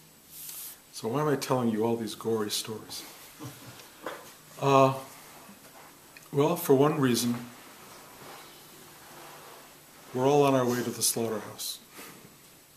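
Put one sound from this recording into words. An elderly man speaks calmly close by, in short bursts with pauses.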